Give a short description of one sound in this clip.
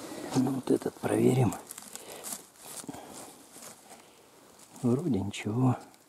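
A knife cuts through a mushroom stem.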